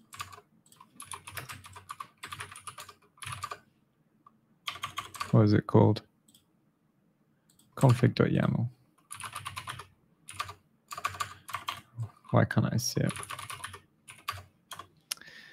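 Computer keys click rapidly.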